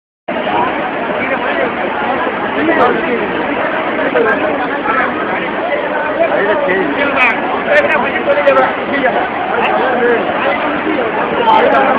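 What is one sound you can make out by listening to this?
A crowd of men shout and talk excitedly nearby.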